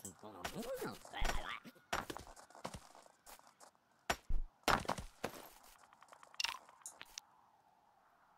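Short knocks and thuds of digging sound now and then.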